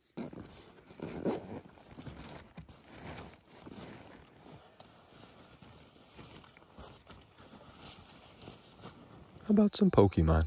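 Nylon fabric and a bag rustle as someone rummages close by.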